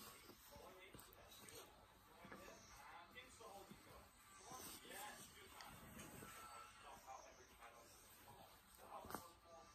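A puppy grunts and growls softly while playing.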